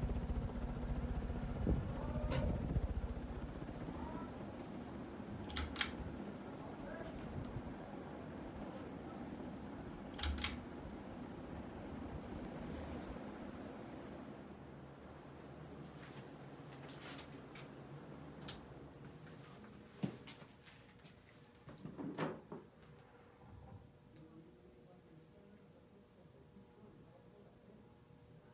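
A ceiling fan hums and whirs, slowly growing quieter.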